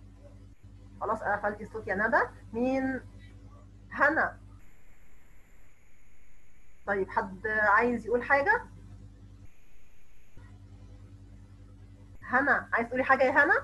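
A young woman speaks with animation through an online call.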